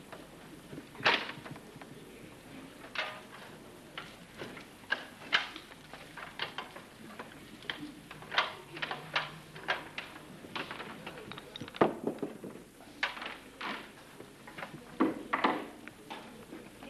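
A microphone thumps and rustles as it is handled up close.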